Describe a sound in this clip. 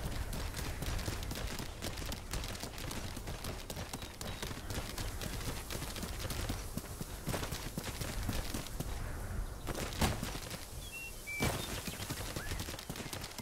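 Heavy clawed feet pound rapidly on the ground as a beast runs.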